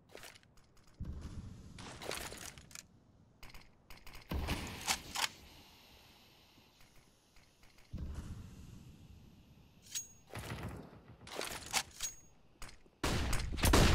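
A smoke grenade bursts and hisses.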